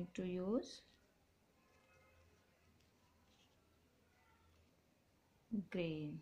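Paper rustles under fingers.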